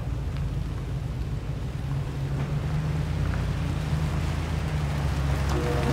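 A car engine rumbles low as a vehicle approaches slowly and grows louder.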